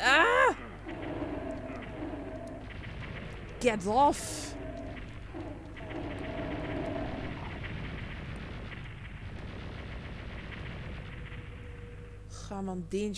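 Video game energy weapons fire with fizzing blasts.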